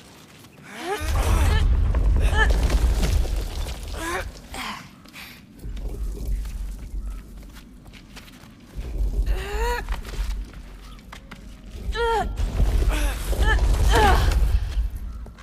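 A woman speaks with effort nearby.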